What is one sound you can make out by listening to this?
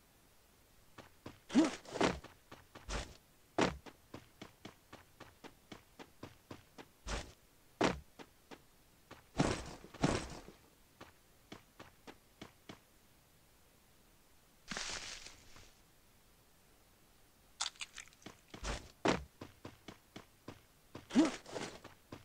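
Quick footsteps run over ground.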